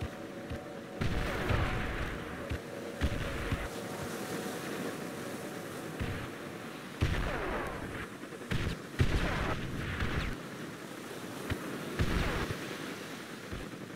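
Explosions boom nearby, one after another.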